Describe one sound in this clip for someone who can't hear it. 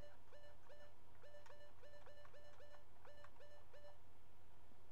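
Short electronic menu blips sound in quick succession.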